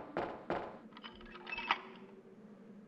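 A key clicks and turns in a lock.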